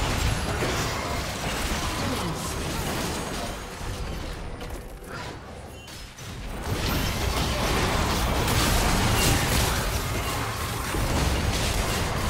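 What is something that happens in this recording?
Game spell effects crackle and boom in a hectic fight.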